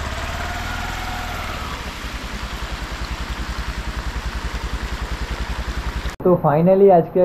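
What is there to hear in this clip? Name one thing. Muddy river water rushes steadily over rocks outdoors.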